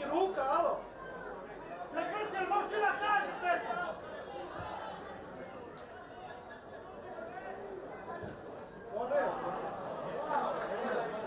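A small crowd of spectators murmurs and calls out outdoors.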